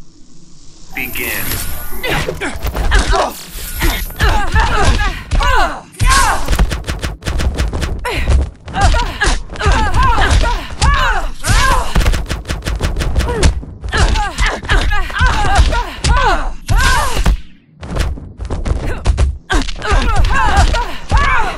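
Heavy punches and blows land with loud impacts in a fast fight.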